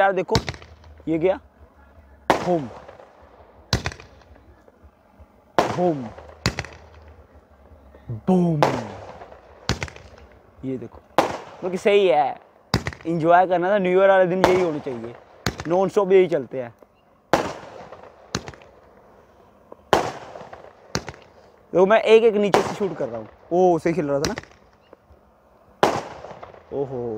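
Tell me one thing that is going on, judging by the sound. Fireworks burst with sharp loud bangs outdoors.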